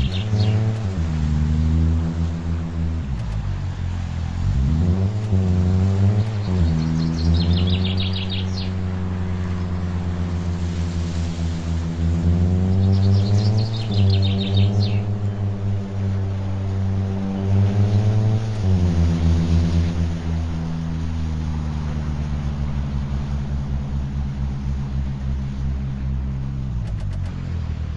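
A car engine hums steadily and revs up and down as the car speeds along.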